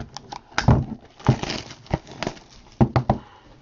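Plastic wrap crinkles and rustles as it is pulled off.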